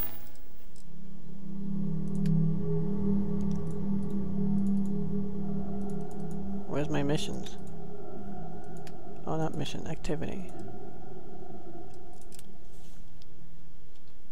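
Soft interface clicks sound as menu tabs are selected.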